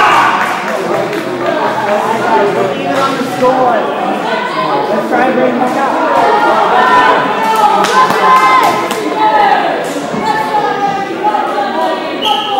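Many young girls chatter and call out in a large echoing hall.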